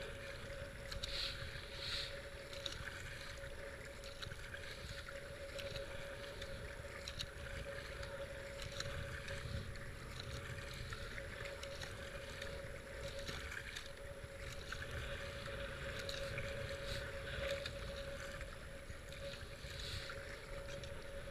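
A kayak paddle splashes rhythmically in the water.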